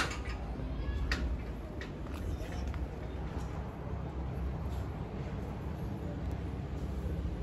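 A small kitten meows softly.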